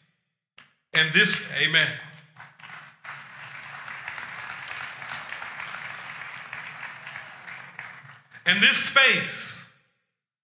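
A man speaks with emphasis into a microphone over loudspeakers in a large echoing hall.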